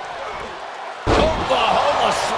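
A heavy body slams hard onto a wrestling ring mat.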